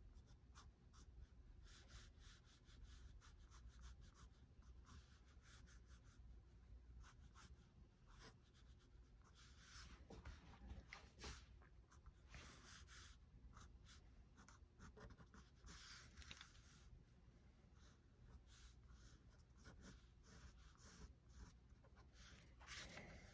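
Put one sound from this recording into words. A pen scratches and scrapes across paper in quick strokes.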